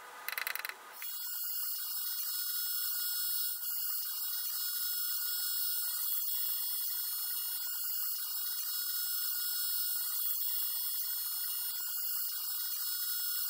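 An ultrasonic cleaner hums with a steady high-pitched hiss.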